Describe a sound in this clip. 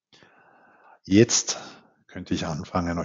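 A man speaks calmly into a microphone, heard as if on an online call.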